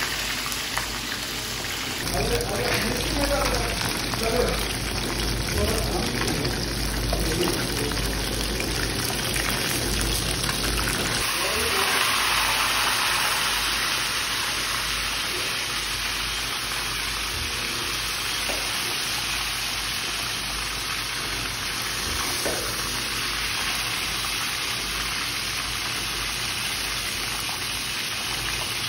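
Hot oil sizzles and crackles steadily in a frying pan.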